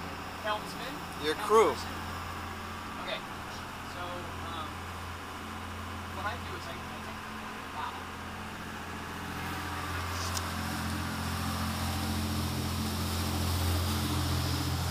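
A boat's engine hums steadily throughout.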